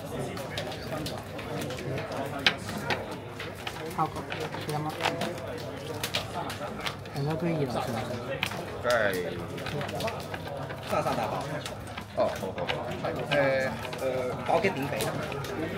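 Playing cards riffle as a deck is shuffled by hand.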